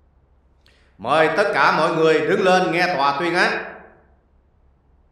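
A man announces loudly and firmly through a microphone.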